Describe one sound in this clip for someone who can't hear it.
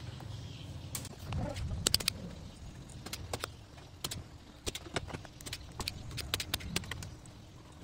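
A desoldering pump clicks and snaps sharply.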